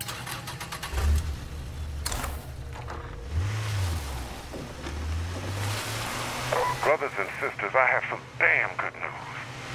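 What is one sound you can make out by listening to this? A car engine hums as the car drives off.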